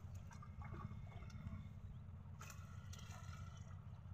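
A broom swishes through shallow water.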